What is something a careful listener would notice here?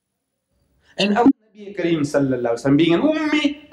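An elderly man speaks slowly and earnestly into a microphone.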